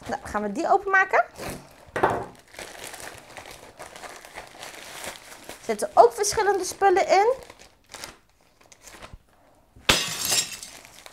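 Plastic mailer packaging crinkles and rustles as hands open it.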